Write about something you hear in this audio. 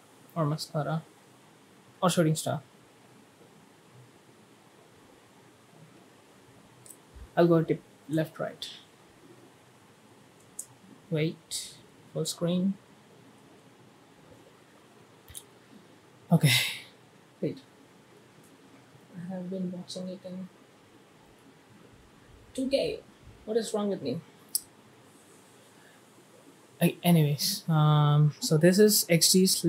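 A young man speaks calmly in short bursts close to a microphone, with pauses between.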